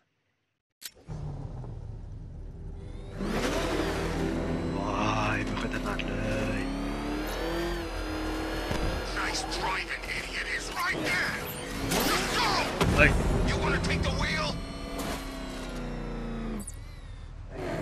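A powerful car engine roars and revs as a vehicle speeds along.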